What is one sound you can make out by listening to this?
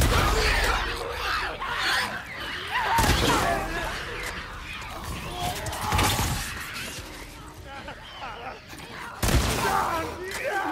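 Gunshots bang loudly with sharp echoes.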